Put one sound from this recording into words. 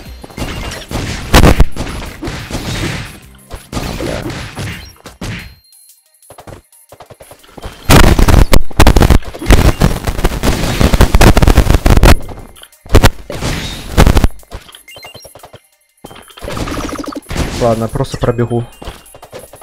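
Game sword slashes and hits clatter in quick bursts.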